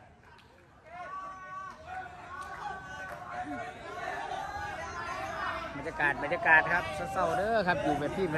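Several men talk and call out outdoors.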